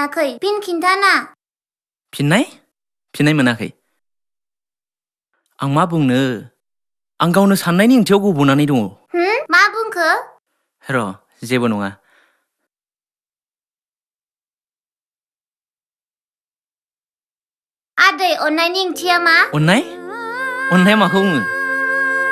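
A young girl speaks quietly and close by.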